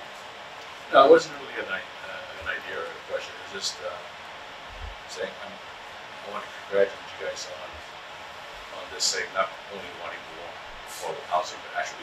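A man speaks calmly, heard through a microphone.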